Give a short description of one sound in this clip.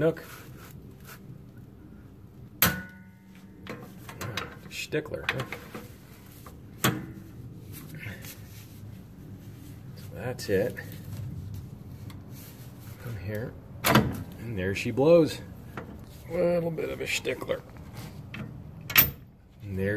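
Metal tools click and clink against brake parts.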